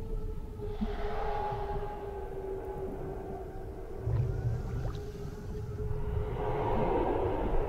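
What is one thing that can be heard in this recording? Eerie ghostly voices wail and shriek.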